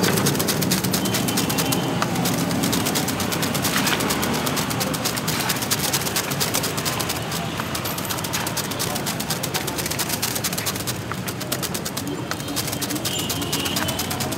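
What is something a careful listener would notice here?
A wire brush scrapes rapidly against a metal lid.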